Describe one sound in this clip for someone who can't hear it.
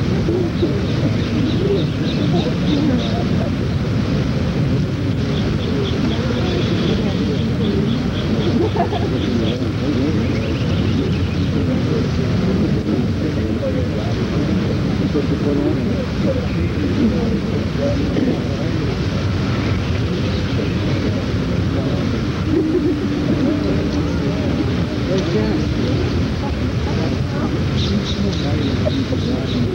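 A crowd of men and women chatters and murmurs nearby outdoors.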